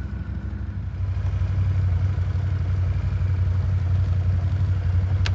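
An all-terrain vehicle's engine idles nearby with a low, steady rumble.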